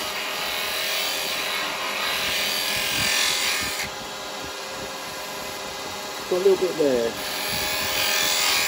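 A chisel scrapes and shaves spinning wood with a rough hiss.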